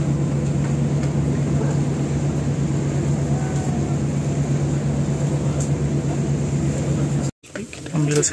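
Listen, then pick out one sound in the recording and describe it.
A boat engine hums steadily nearby.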